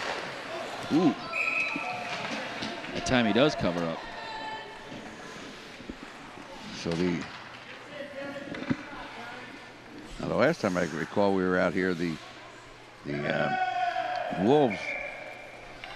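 Children shout and call out across an echoing rink.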